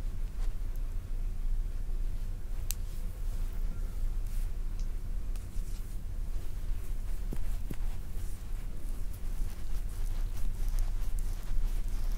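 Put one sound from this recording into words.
Fingers rub and press on bare skin close to a microphone.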